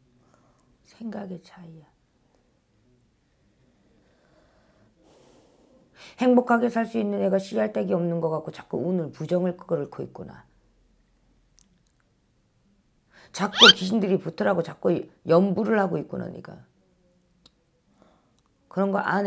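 A young woman speaks with animation close to a microphone, pausing between phrases.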